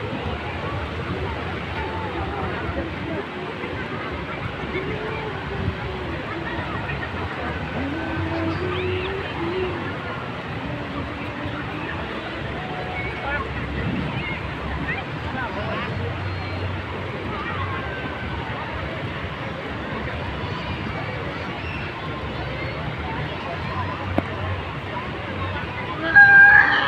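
Many people chatter and call out in the distance, outdoors.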